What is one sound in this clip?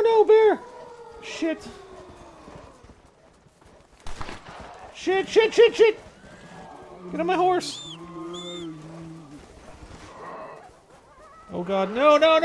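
Footsteps crunch through snow at a run.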